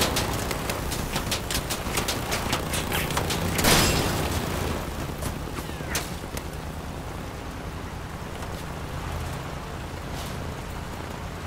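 A heavy vehicle engine rumbles steadily.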